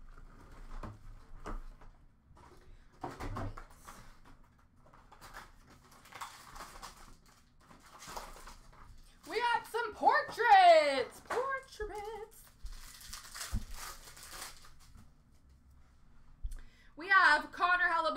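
Card packs rustle and click as hands sort them.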